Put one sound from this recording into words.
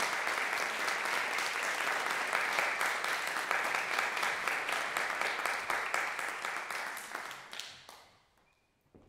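An audience applauds in a hall, then the applause fades out.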